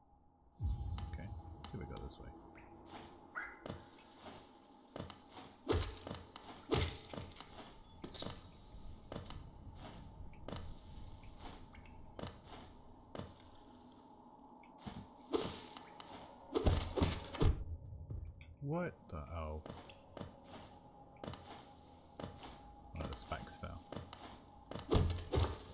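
Light footsteps patter and thud on landings.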